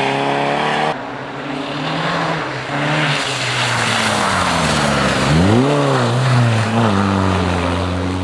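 A second rally car engine revs up and roars past.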